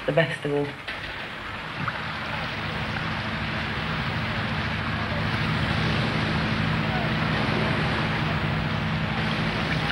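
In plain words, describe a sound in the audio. Small waves wash gently onto a pebble shore.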